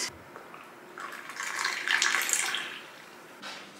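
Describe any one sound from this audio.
Coffee pours into a mug.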